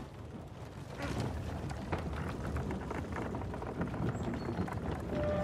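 A heavy wooden crate scrapes across stone.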